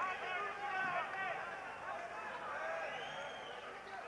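Boxing gloves thud against a boxer's body.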